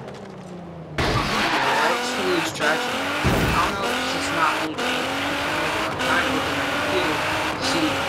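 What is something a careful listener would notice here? A car engine roars as it accelerates hard, revving up and dropping with each gear change.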